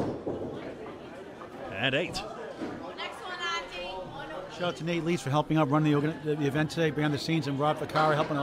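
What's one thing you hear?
A bowling ball rolls down a wooden lane with a low rumble.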